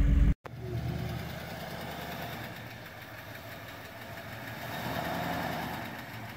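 An engine rumbles steadily as a truck drives slowly up a dirt track.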